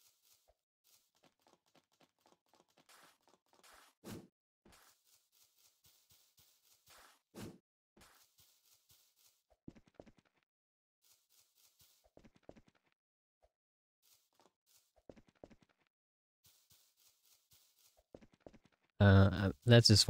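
Footsteps crunch quickly on snow.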